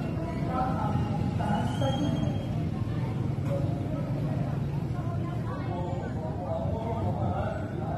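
A woman talks close to the microphone.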